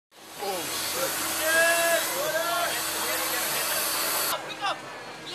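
Compressed air hisses loudly.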